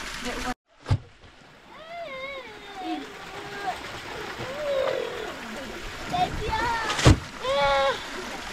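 A woman scrubs a wet blanket on rock, squelching water.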